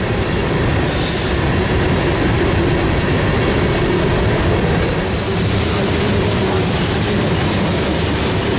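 A freight train rumbles past close by, its wheels clattering on the rails.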